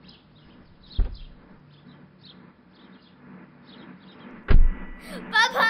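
A car door opens with a thump.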